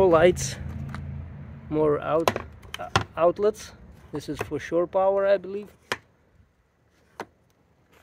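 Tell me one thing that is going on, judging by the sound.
A plastic outlet cover snaps open and shut.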